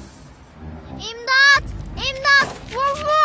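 A girl screams in panic close by.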